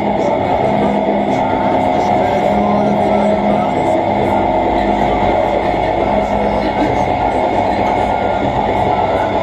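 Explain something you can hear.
Loud droning electronic music plays through speakers.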